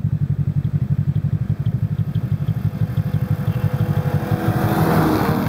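A snowmobile engine drones steadily nearby, growing louder as the snowmobile approaches.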